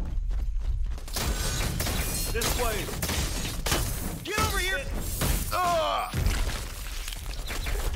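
Heavy footsteps thud and rustle through dense undergrowth.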